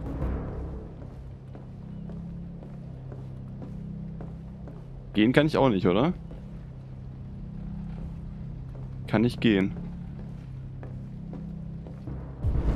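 Footsteps walk slowly across a wooden floor.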